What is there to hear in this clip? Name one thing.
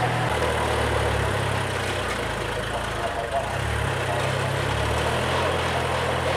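A rotary tiller churns through soil with a rattling clatter.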